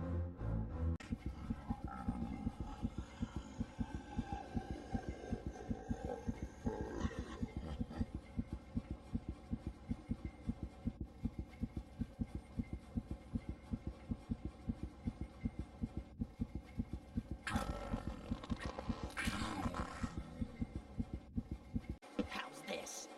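A creature grapples with a woman in a rapid, steady run of thuds.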